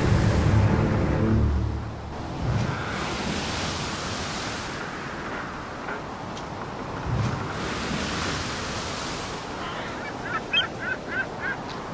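Wind gusts roughly across the microphone outdoors.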